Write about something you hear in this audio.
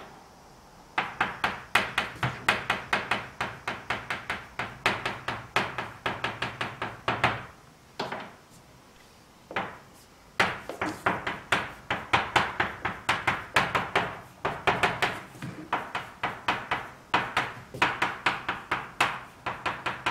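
Chalk taps and scrapes rapidly on a blackboard.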